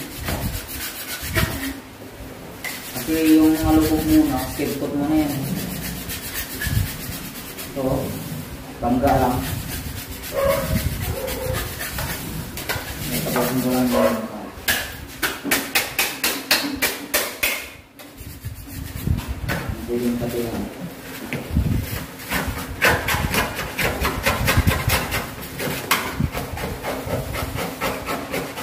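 A paint roller rolls and swishes against a ceiling in quick strokes.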